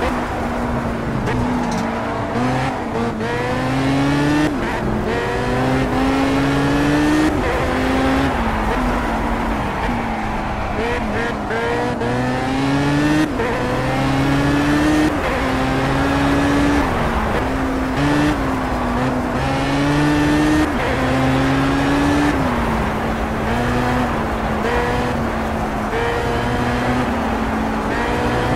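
A racing car engine revs high and drops as the gears shift up and down.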